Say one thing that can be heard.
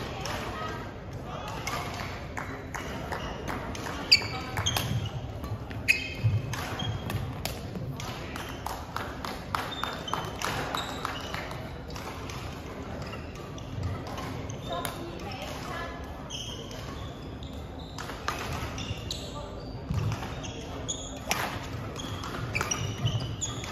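Shuttlecocks are struck with sharp pops of rackets in a large echoing hall.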